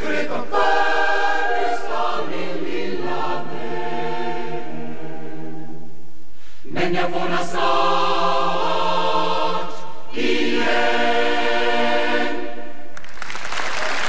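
A large choir sings in a reverberant hall.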